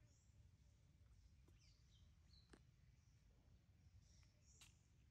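A small monkey scrambles along a thin branch with light knocks and rustles.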